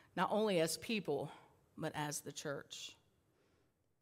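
A woman speaks calmly into a headset microphone.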